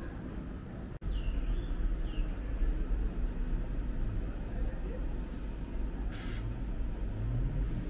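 A bus drives slowly along a street with a low engine hum.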